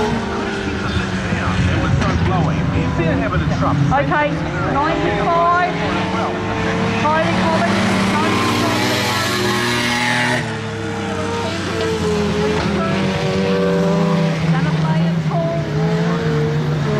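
Race car engines roar and rev nearby.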